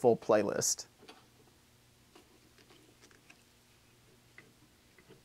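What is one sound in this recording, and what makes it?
Small metal parts click and tap softly as they are adjusted by hand.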